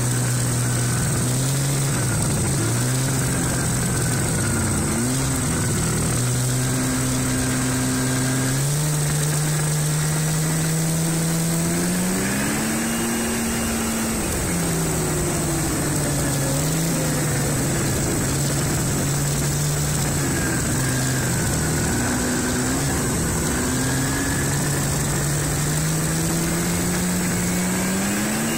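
A snowmobile engine drones loudly close by, its pitch rising and falling as it speeds up and slows down.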